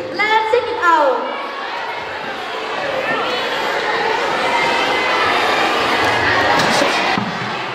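A choir of young girls sings together through loudspeakers outdoors.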